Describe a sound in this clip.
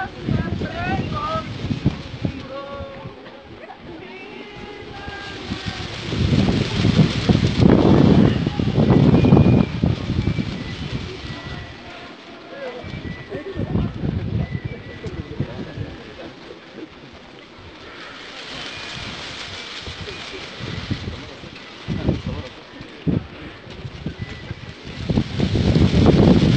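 A crowd of men and women chatters outdoors.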